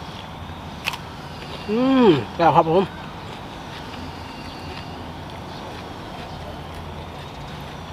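A young man crunches on raw vegetables while chewing.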